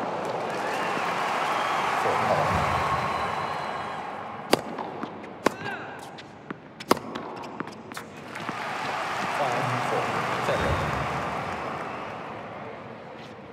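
A crowd applauds and cheers in an arena.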